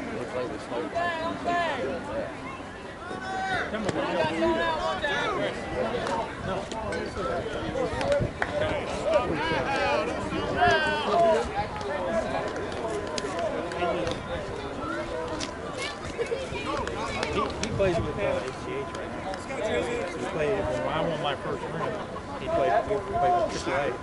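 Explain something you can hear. Men and women talk and call out across an outdoor field.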